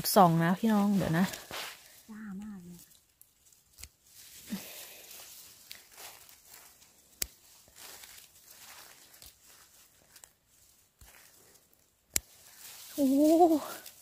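Dry grass rustles under handling.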